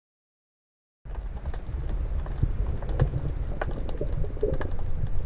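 Water rumbles and hisses steadily, heard muffled from underwater.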